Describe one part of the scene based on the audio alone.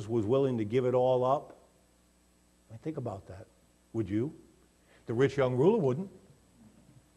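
An older man preaches with emphasis into a microphone, with pauses between his phrases.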